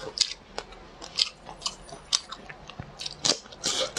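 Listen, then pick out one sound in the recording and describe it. A young woman chews soft food close to a microphone, with wet smacking sounds.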